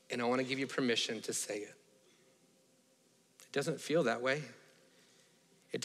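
A man speaks calmly into a microphone in a large hall, pausing between phrases.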